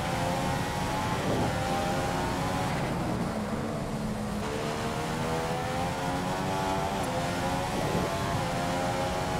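A racing car engine screams at high revs, dropping in pitch for a braking zone and then climbing again as it accelerates.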